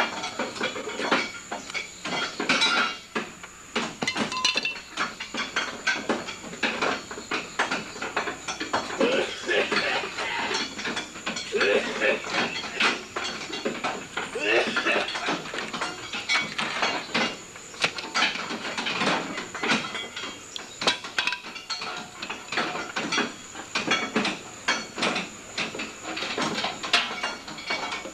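A man speaks calmly nearby, outdoors.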